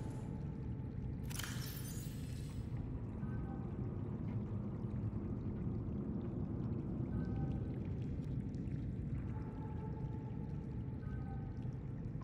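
A deep, steady hum drones throughout.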